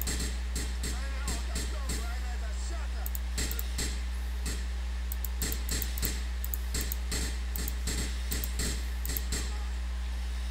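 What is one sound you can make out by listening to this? A pistol fires a rapid series of shots.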